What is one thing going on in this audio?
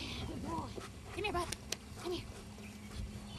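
A man talks encouragingly to a dog outdoors.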